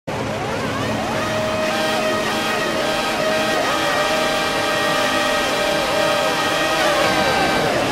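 A racing car engine revs loudly in short bursts while standing still.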